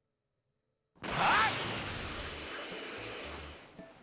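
An energy blast roars and slowly fades.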